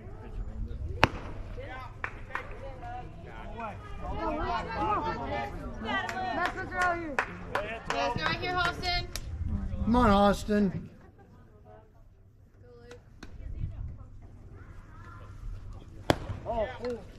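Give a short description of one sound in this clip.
A baseball pops sharply into a catcher's mitt.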